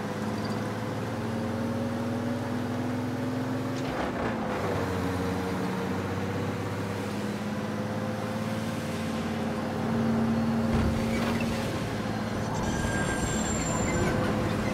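A truck engine hums steadily and changes pitch as the gears shift.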